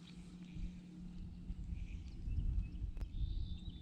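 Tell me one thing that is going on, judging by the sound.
A fishing reel ticks softly as its handle is turned.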